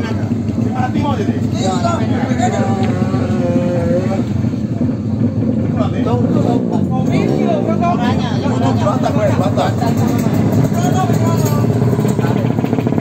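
Men talk with each other nearby.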